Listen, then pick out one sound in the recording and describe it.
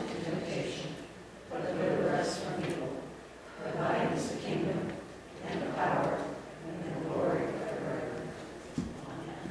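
A woman reads aloud with animation through a microphone in an echoing hall.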